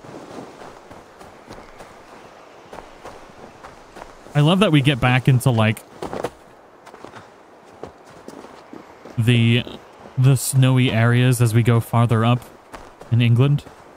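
Footsteps crunch over leaves and snow.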